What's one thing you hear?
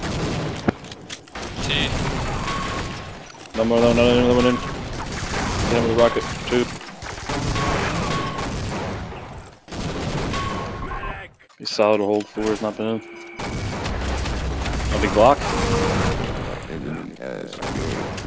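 Rapid gunfire rattles and bangs.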